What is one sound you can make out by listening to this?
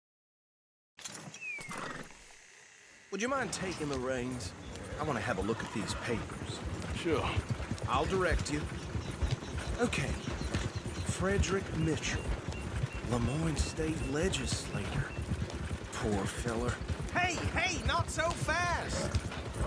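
A horse-drawn wagon rattles and creaks along a dirt track.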